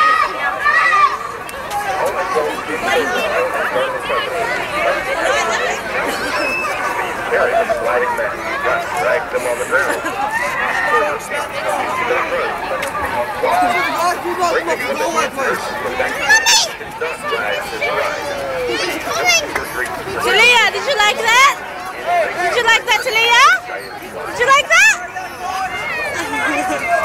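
Children shout and squeal with excitement.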